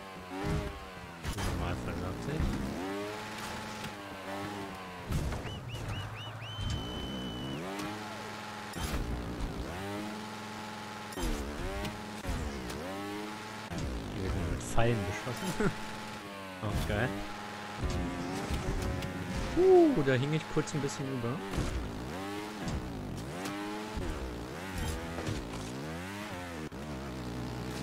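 A motorbike engine revs up and down in short bursts.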